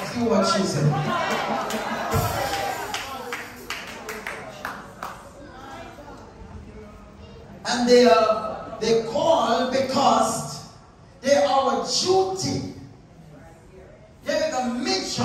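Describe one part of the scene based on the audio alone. A man speaks with animation into a microphone over loudspeakers, echoing in a room.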